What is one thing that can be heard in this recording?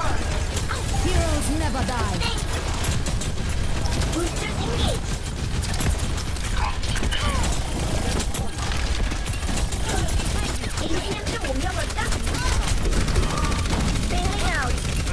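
Rapid video game gunfire crackles and booms continuously.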